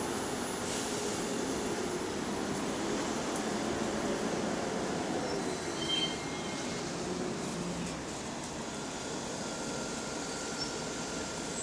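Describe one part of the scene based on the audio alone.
A bus engine rumbles as the bus pulls away from a stop.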